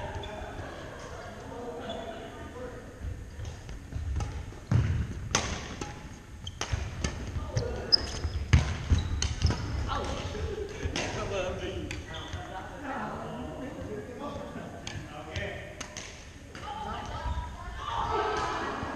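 Sneakers squeak and thump on a wooden floor.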